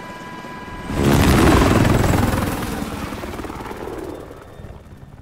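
A loud blast booms and rumbles slowly away.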